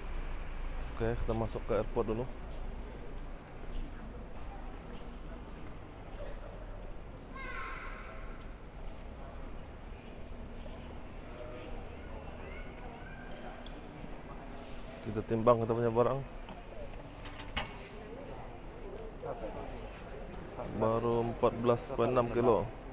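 A man speaks calmly nearby in an echoing hall.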